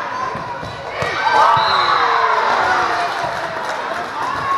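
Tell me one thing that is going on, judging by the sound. Young girls shout to each other during a game.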